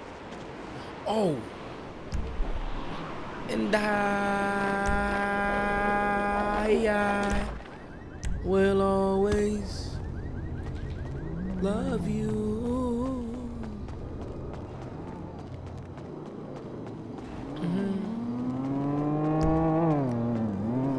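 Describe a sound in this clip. A young man talks and shouts excitedly into a microphone.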